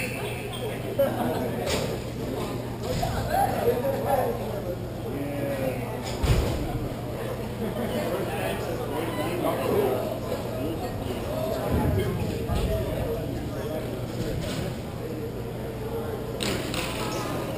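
Hockey sticks clack sharply against a ball and the floor.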